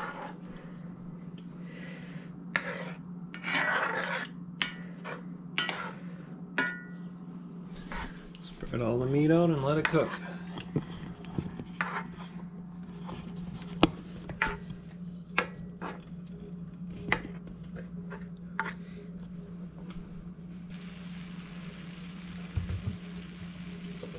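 A spoon scrapes and knocks against a pan.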